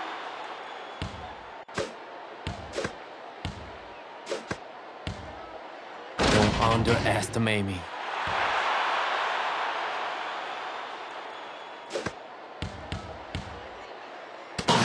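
A basketball bounces repeatedly on a hard court.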